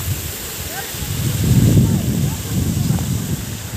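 Wind buffets the microphone in gusts.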